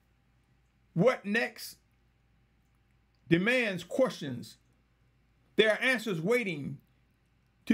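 A man speaks calmly in short phrases close to a microphone, with pauses between them.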